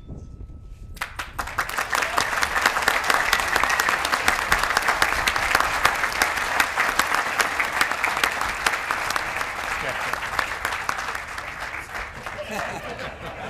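A large crowd applauds loudly outdoors, then the clapping fades.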